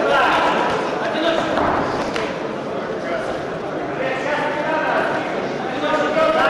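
Spectators shout and call out in an echoing hall.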